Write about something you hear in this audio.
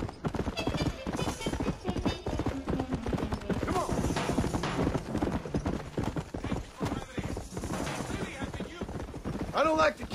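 Horse hooves thud steadily on a dirt trail.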